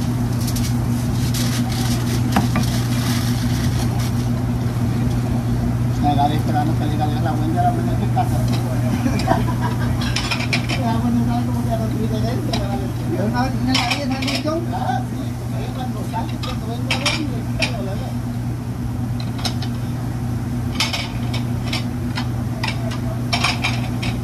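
Ceramic plates clatter as they are stacked and handled.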